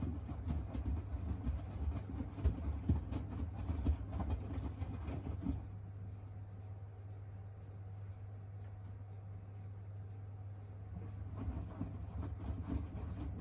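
A washing machine drum turns, sloshing and thumping laundry.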